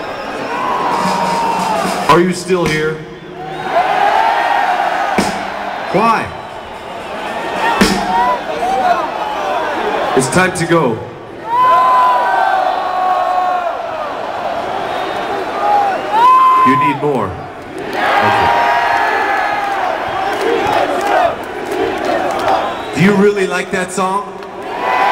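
A rock band plays loudly through large loudspeakers in the open air.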